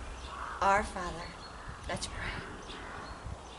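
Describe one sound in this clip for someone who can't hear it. An older woman reads out calmly through a microphone, outdoors.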